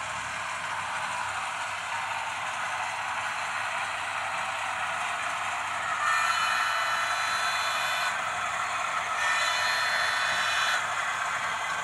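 A model train hums and rattles along the track, growing louder as it approaches.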